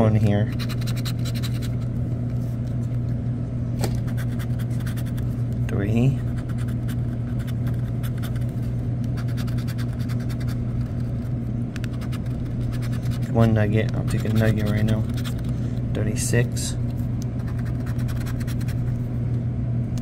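A pen tip scrapes quickly across a scratch card.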